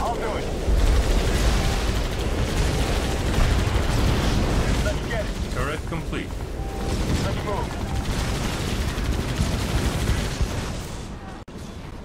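Guns fire and explosions rumble in a loud battle.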